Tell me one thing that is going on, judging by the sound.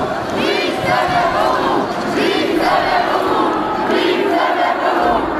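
A large crowd chants and cheers loudly in an echoing arena.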